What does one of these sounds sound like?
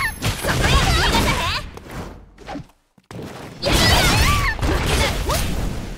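Fiery energy blasts whoosh and crackle.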